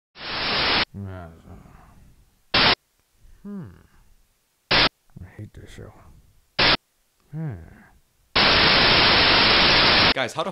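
Loud static hisses in short bursts.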